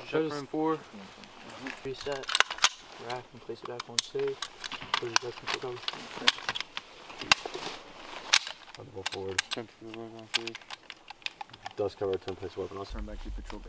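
Metal parts of a rifle click and clack as they are handled.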